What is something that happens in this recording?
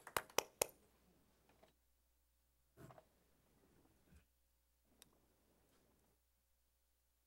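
People shift in their chairs and shuffle about with soft knocks and rustles.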